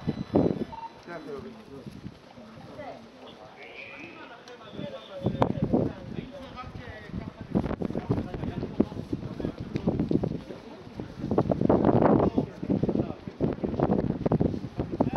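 A man talks calmly close by, outdoors.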